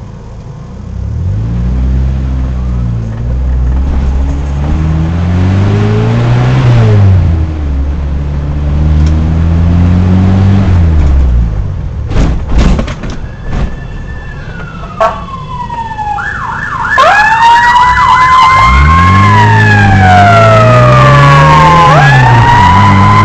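A car engine revs up and down through the gears.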